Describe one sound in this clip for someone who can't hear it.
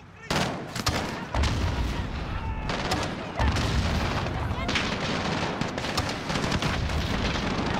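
A launcher fires with a heavy thump.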